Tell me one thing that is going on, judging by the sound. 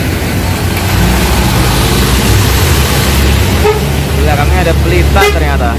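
A bus pulls away, its engine rumbling louder.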